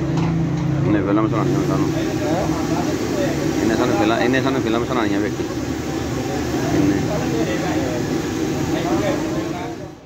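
A man talks on a phone.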